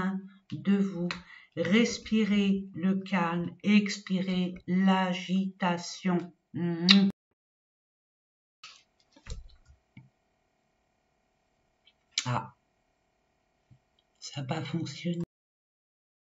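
A woman speaks calmly close to the microphone.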